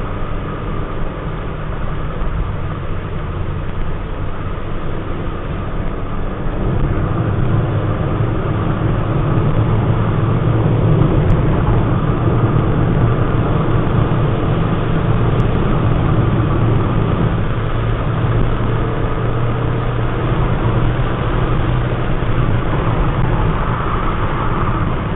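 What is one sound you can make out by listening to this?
A car engine hums steadily from inside the car, growing louder as the car speeds up.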